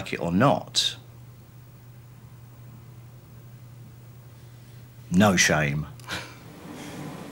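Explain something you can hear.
A middle-aged man speaks in short bursts close to a microphone.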